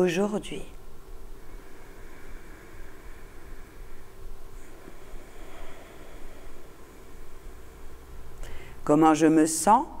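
A middle-aged woman speaks slowly and calmly into a close microphone.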